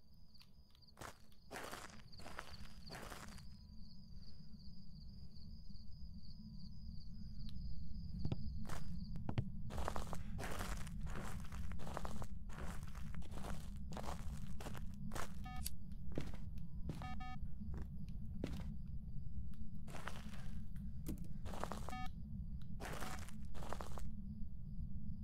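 Footsteps thud slowly across creaking wooden floorboards.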